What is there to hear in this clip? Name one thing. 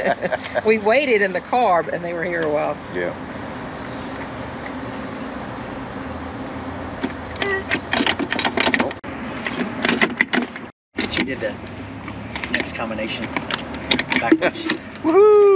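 A metal lock clicks and rattles as it is handled.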